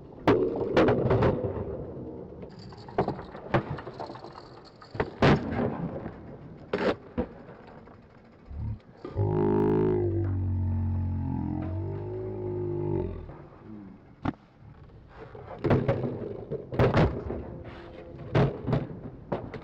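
Skateboard wheels roll on concrete.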